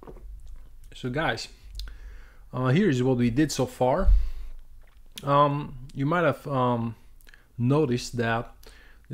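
A man speaks calmly and thoughtfully, close to a microphone.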